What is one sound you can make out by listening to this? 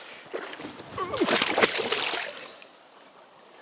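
Hands splash in river water.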